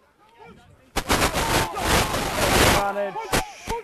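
A crowd of spectators cheers and applauds.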